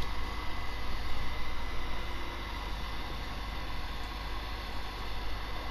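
Bedding rustles softly as someone shifts on a bed.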